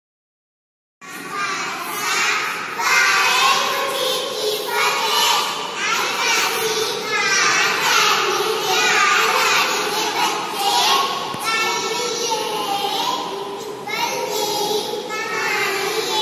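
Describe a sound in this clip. A group of young children recite together in unison, heard in a room with some echo.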